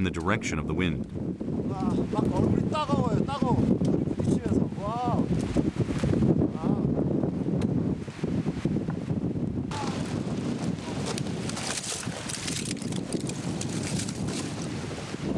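Strong wind blows across the microphone outdoors.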